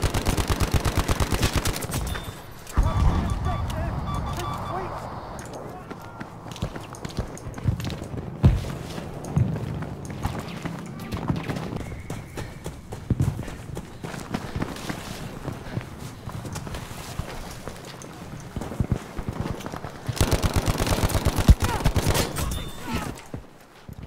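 A submachine gun fires in rapid bursts close by.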